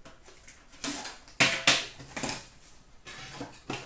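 A metal tin clatters onto a plastic tub.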